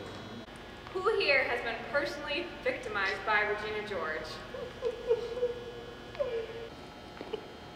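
A young woman speaks clearly to a seated group in a large echoing hall.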